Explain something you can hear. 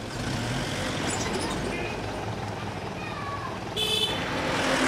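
A motorcycle engine rumbles past.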